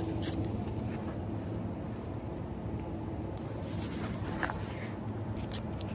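A plastic package crinkles in a hand.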